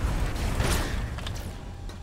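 A weapon fires with a sharp blast.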